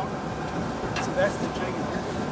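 Metal gates of a cattle chute clank and rattle.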